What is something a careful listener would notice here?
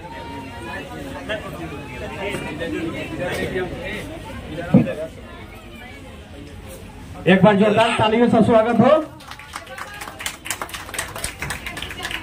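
A group of people talk and murmur close by.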